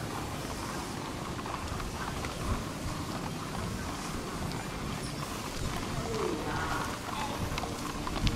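Horses' hooves thud softly on grass as they are led at a walk.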